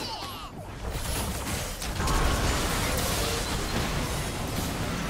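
Magic spells blast and crackle in a busy fight.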